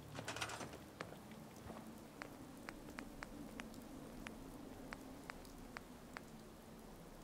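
Short soft clicks tick one after another as a menu is browsed.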